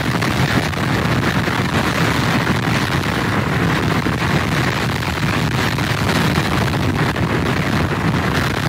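Strong wind blows hard outdoors.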